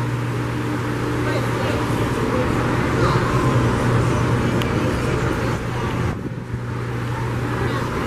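Footsteps walk on a wooden boardwalk.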